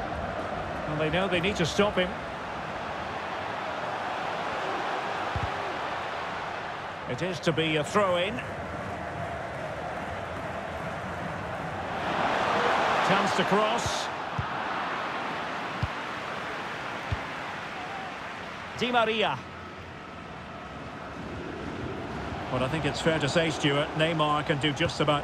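A stadium crowd roars steadily, swelling loudly for a moment.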